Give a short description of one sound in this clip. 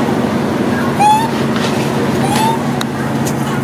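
A long-tailed macaque squeals sharply.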